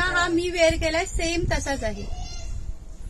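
A middle-aged woman speaks cheerfully close by.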